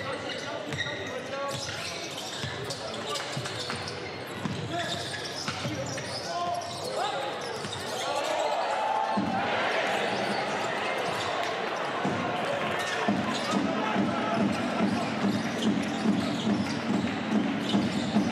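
A basketball thumps as it bounces on the court.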